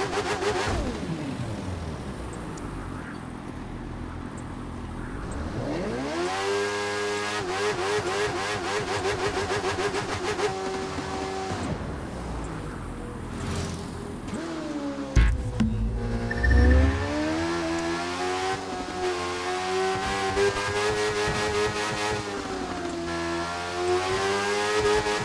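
A motorcycle engine revs high and roars, rising and falling in pitch as it speeds up and slows down.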